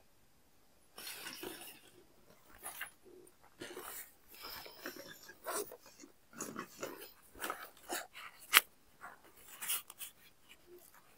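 A man rummages through a bag, rustling and clicking.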